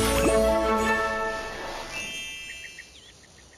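A bright, rising musical jingle plays and fades.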